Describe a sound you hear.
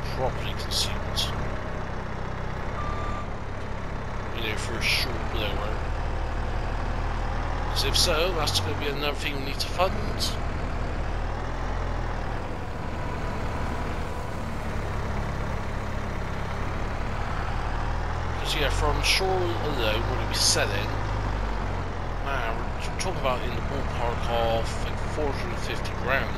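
A loader's diesel engine rumbles steadily.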